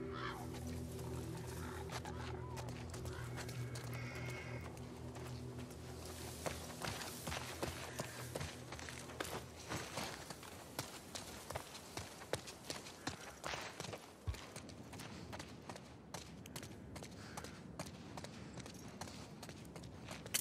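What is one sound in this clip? Footsteps tread softly across the ground and floor.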